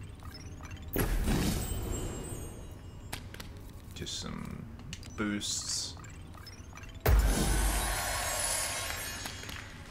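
A game menu plays a loud whooshing burst as a pack opens.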